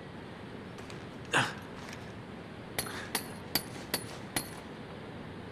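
Hands grab and scrape on stone while climbing.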